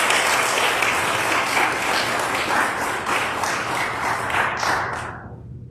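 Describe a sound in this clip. A young woman speaks into a microphone in a large echoing hall.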